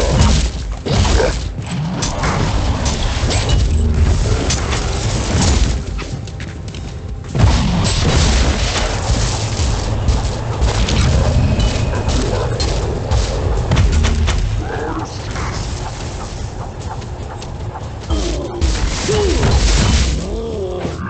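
Weapons clash against monsters.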